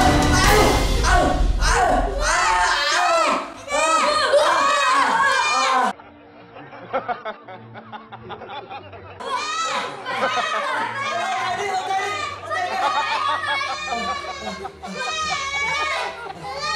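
A boy screams loudly.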